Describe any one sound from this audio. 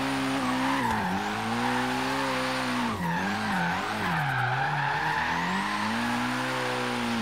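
A car engine revs loudly, rising and falling in pitch.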